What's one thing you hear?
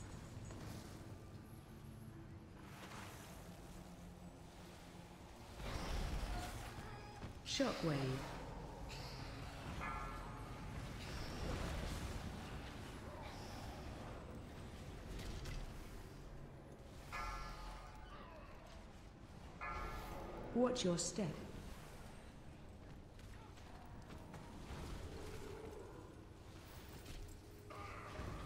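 Magic spells crackle and boom in a battle.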